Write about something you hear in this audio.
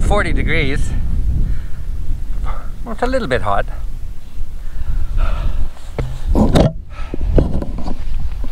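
A middle-aged man speaks with animation, close to the microphone, outdoors in wind.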